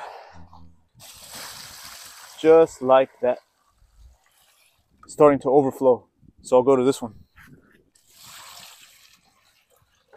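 Water pours from a bucket and splashes onto dry leaves and soil.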